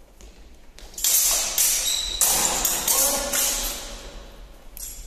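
Steel blades clash and scrape.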